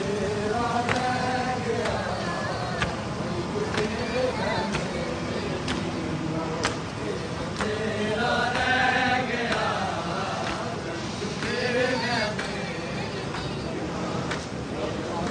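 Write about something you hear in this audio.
A crowd of men chants loudly outdoors.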